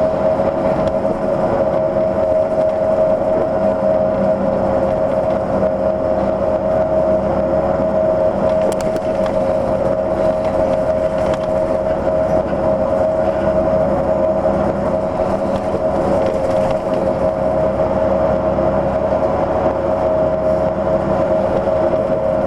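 A steady engine hum and road noise fill the inside of a moving vehicle.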